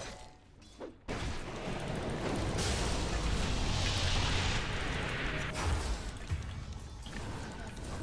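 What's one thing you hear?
Magic blasts and crackling effects burst loudly from a game.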